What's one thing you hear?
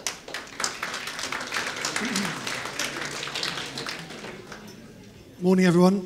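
An audience applauds, fading out.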